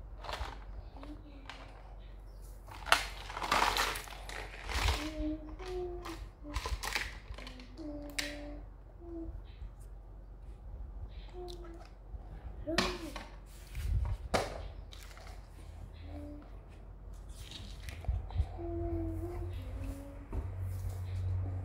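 A young girl talks softly and calmly close by.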